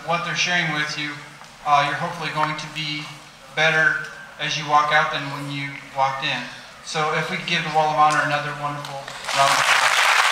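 A man speaks through a microphone to a large hall.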